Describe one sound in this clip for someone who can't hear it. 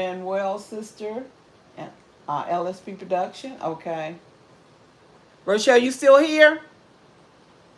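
An older woman talks with animation close by, in short bursts.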